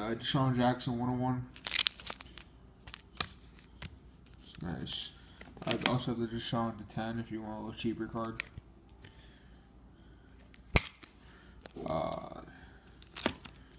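Hard plastic card cases click and clack as hands handle them.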